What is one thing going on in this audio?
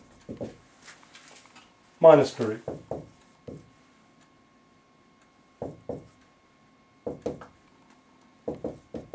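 A man speaks slowly and clearly, close to a microphone.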